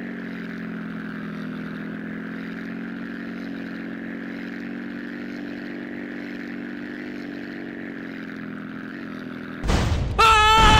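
A small propeller plane engine drones steadily.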